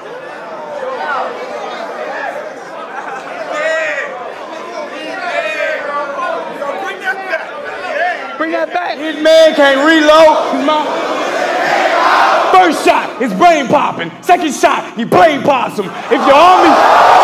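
A man raps loudly into a microphone.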